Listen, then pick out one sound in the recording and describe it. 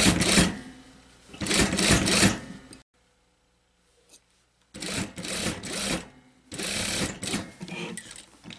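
A sewing machine whirs as it stitches.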